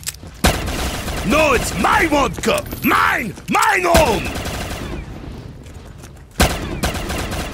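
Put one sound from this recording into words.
A pistol fires sharp, loud shots.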